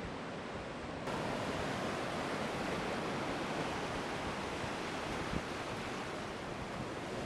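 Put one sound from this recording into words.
Shallow water washes and swirls around a person wading.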